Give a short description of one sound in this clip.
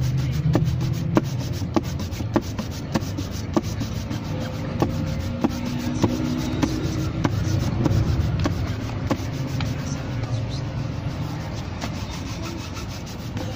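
A cloth snaps and rubs briskly against a leather shoe.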